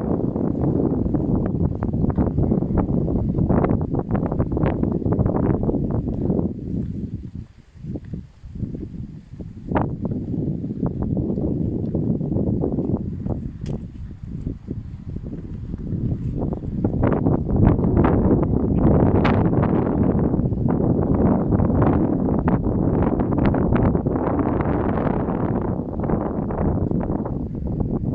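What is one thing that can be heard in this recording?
Wind buffets loudly against the microphone outdoors.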